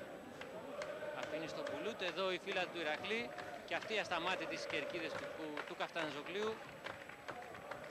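A large crowd chants loudly in an open stadium.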